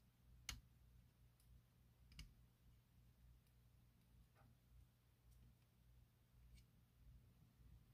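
A small tool clicks and taps against a circuit board.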